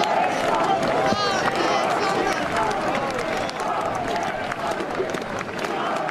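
A large crowd chants loudly outdoors.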